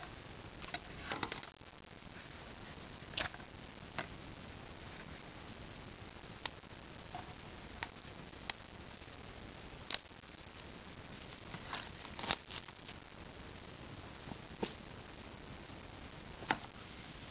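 A cardboard box taps and knocks as it is handled.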